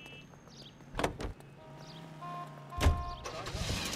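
A car door opens and slams shut.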